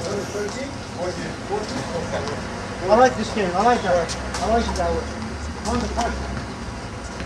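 Men call out to each other outdoors.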